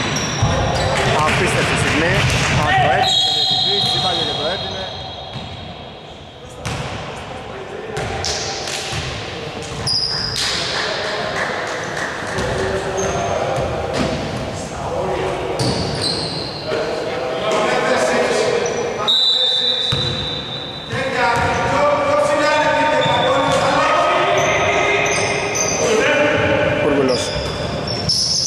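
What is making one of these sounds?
A basketball thuds as it bounces on the wooden floor.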